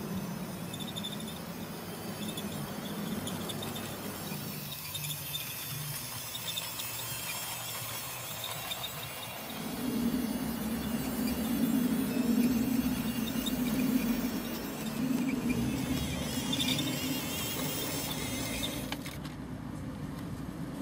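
A model train rumbles and clicks along its track.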